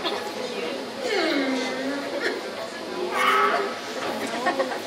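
A man sings in a wavering voice.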